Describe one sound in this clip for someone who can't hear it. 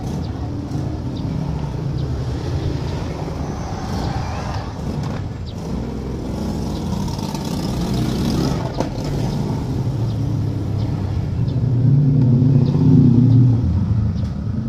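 A squeegee scrapes across vinyl film.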